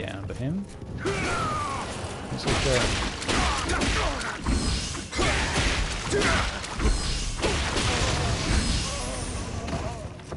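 Swords clash and slash rapidly in a fight.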